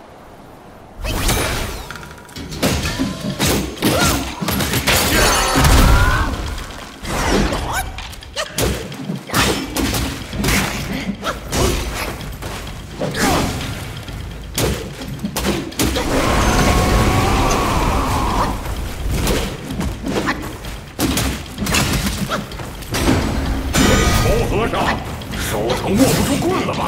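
Weapons clash and strike with heavy impacts.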